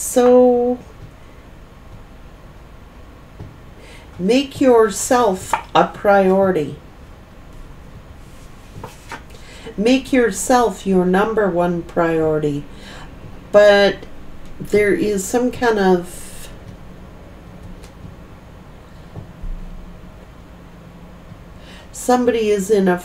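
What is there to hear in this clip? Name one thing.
A middle-aged woman speaks calmly and close to a microphone, with pauses.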